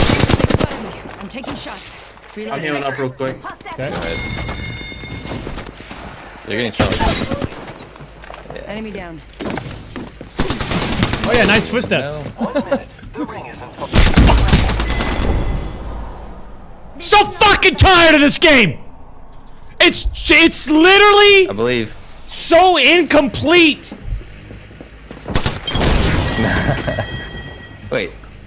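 A man talks loudly and with animation into a close microphone.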